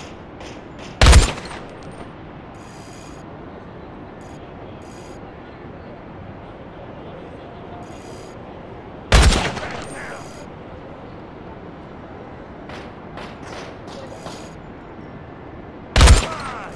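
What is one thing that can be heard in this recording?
A sniper rifle fires a single sharp shot with a short echo.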